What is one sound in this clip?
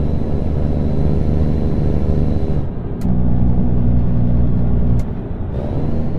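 A truck's diesel engine rumbles steadily, its pitch shifting as gears change.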